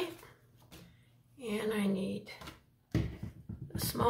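A small stamp dabs lightly on an ink pad.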